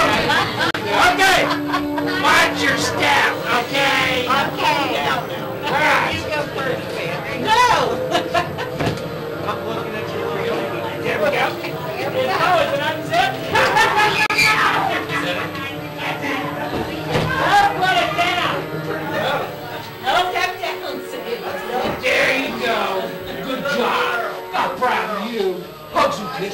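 Several women talk and laugh excitedly close by.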